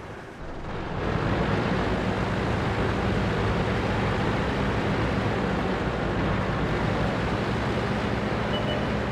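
Tank tracks clatter and squeal over snow.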